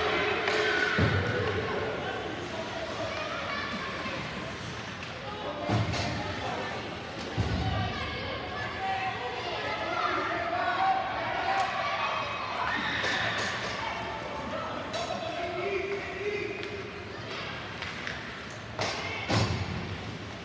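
Hockey sticks clack against a puck with sharp knocks.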